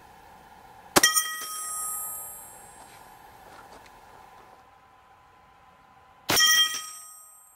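A rifle fires sharp shots that echo across open ground.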